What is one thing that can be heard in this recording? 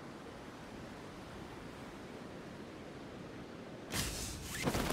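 Wind rushes steadily during a freefall.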